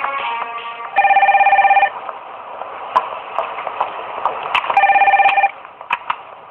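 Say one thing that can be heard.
A desk telephone rings loudly.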